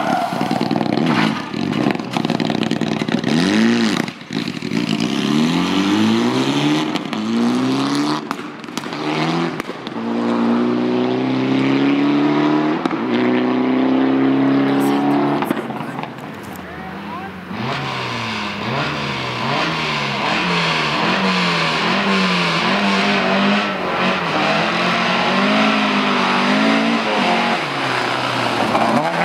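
A rally car engine revs hard and rises and falls in pitch.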